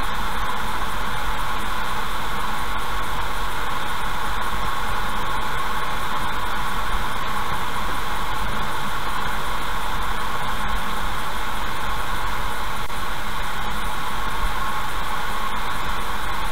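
Tyres roll steadily over a wet road.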